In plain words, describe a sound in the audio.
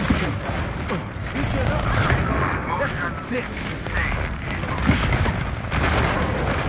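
An energy weapon fires in rapid crackling bursts.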